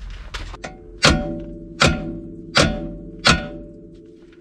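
A hammer strikes metal with loud ringing blows.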